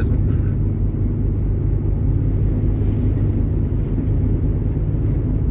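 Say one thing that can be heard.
A heavy vehicle's engine rumbles steadily as it drives along the road.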